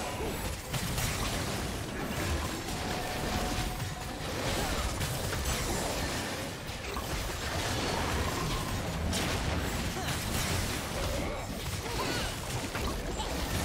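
Game spell effects crackle and clash in a fight.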